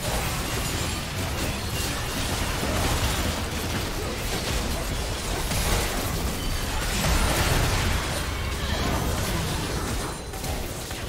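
Video game spell effects whoosh, crackle and explode in a dense battle.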